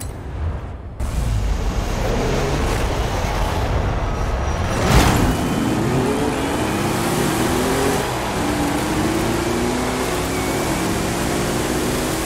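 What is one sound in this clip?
Tyres crunch over gravel and dirt.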